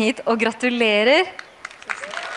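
A young girl speaks brightly into a microphone.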